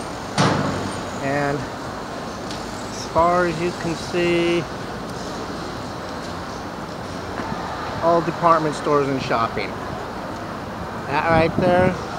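Traffic hums steadily in the distance.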